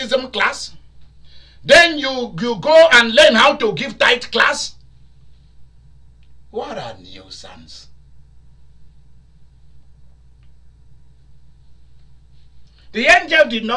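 A middle-aged man speaks with animation into a nearby microphone, pausing between phrases.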